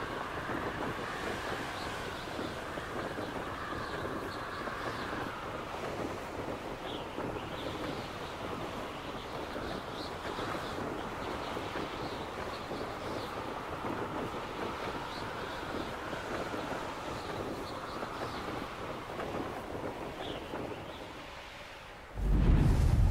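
Wind rushes steadily past during a fast flight.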